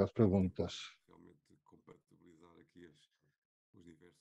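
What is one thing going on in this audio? Another man talks quietly and faintly in the background of the call.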